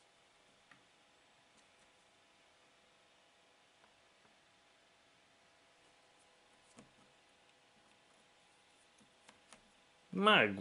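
Puzzle pieces click softly as a hand picks through them.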